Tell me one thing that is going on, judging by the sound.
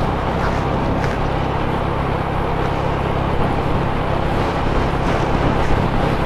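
A motorcycle engine hums steadily while riding along.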